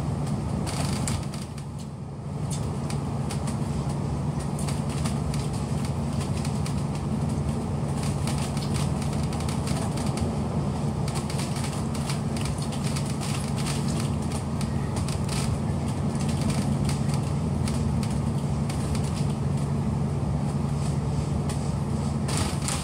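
A vehicle rumbles and hums steadily while moving along.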